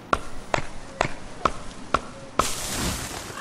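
An axe chops into wood with sharp, regular knocks.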